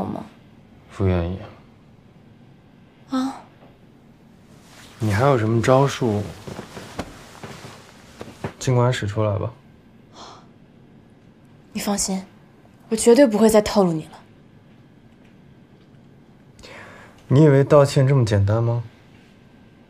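A young man speaks in a low, firm voice, close by.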